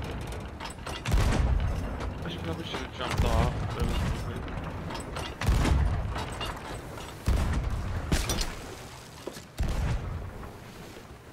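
Ocean waves wash against a ship's hull.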